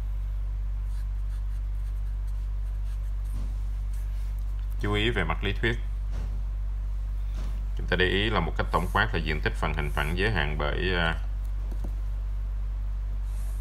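A marker squeaks softly across paper.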